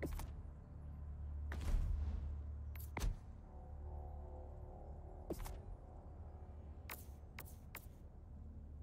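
Short electronic menu clicks and swishes sound now and then.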